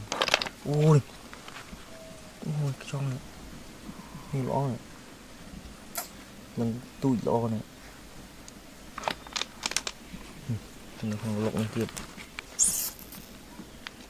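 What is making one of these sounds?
Dry leaves rustle and crackle as hands dig through them.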